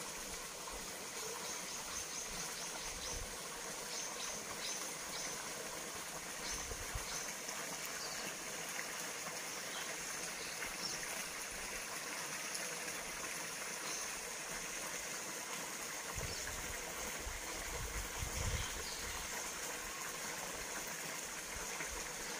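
Water splashes steadily from a pipe into a pond.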